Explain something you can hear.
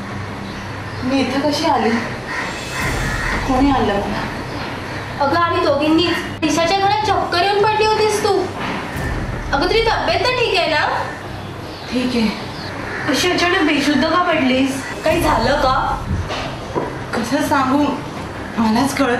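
A young woman answers weakly and upset, close by.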